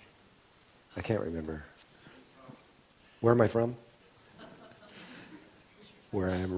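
A man speaks calmly through a microphone in short phrases with pauses.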